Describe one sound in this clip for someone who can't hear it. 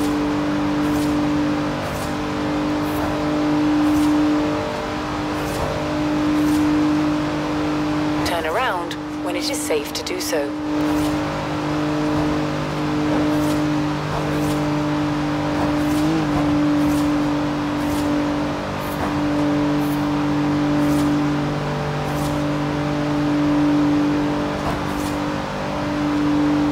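A sports car's engine roars steadily at high speed.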